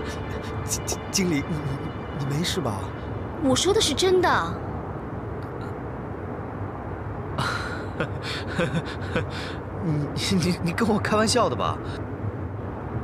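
A young man speaks with feeling, close by.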